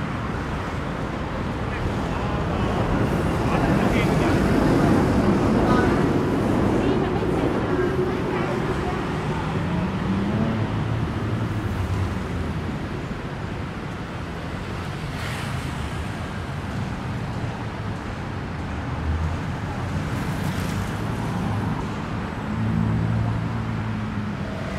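Traffic rumbles steadily along a busy road outdoors.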